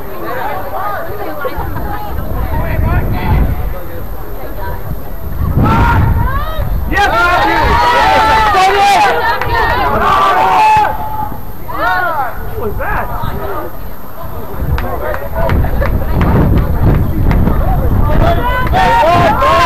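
Young men shout to each other far off across an open field.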